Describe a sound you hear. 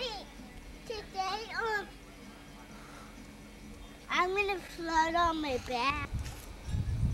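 A young child talks and squeals excitedly close by.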